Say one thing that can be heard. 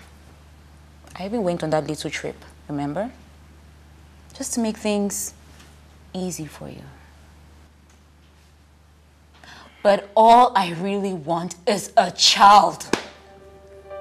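A young woman speaks sharply with rising emotion.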